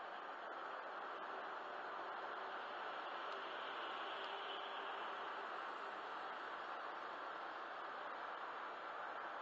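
Tyres roar steadily on a motorway from inside a moving car.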